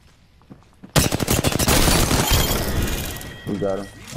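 Rapid gunfire rattles in a quick burst.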